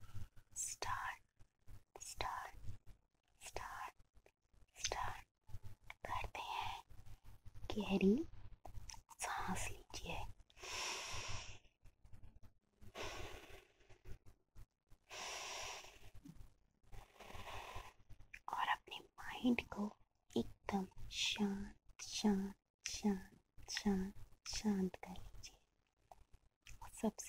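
Hands rub and brush close to a microphone.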